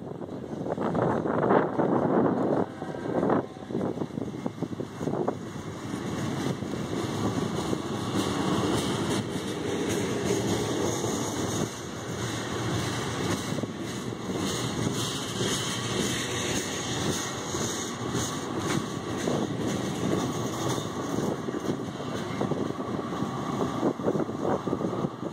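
A long freight train rumbles past close by.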